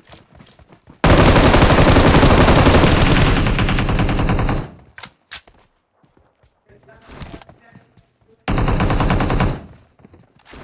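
A rifle fires in rapid, loud bursts.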